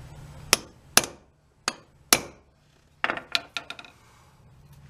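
Metal parts click and clink sharply against each other.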